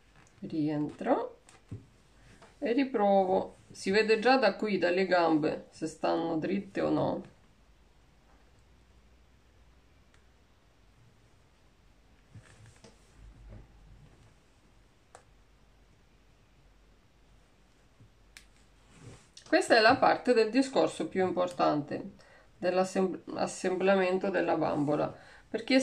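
A woman speaks calmly and close, as if explaining.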